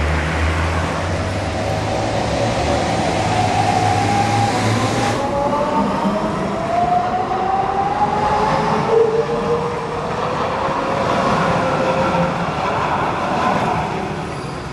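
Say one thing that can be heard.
A tram's motor whines, rising in pitch as it pulls away.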